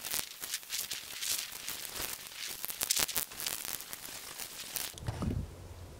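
Dry leaves rustle and crackle underfoot.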